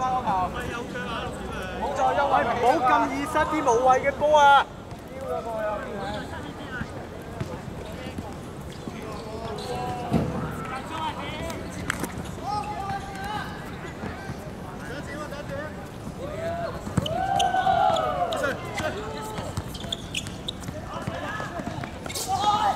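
Young men shout and call out to each other across an outdoor pitch.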